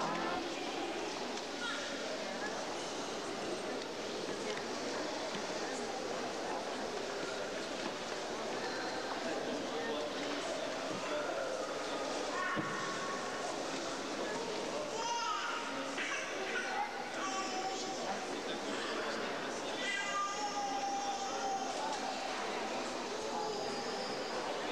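A crowd of men and women chatter all around in an echoing room.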